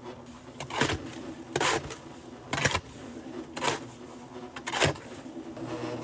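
A shovel scrapes and knocks against the inside of a metal drum.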